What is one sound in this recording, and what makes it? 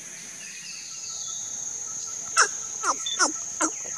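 A chimpanzee rustles through leaves close by.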